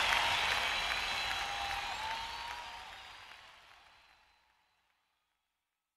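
A woman sings into a microphone.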